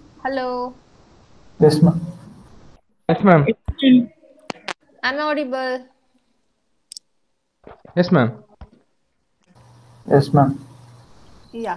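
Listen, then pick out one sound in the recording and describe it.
A woman speaks through an online call, in short bursts.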